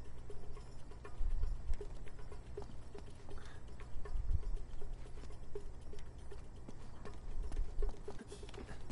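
Footsteps tap steadily on a hard stone floor and stairs.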